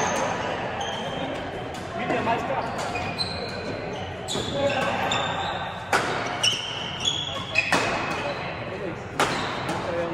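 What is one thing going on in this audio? Shuttlecocks are struck with rackets, with sharp pops echoing around a large hall.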